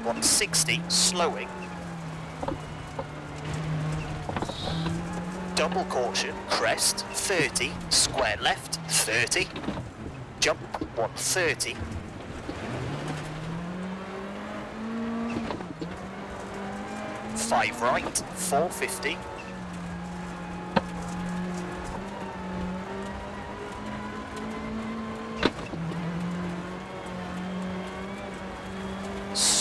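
A rally car engine drones steadily, rising and falling in pitch with each gear change.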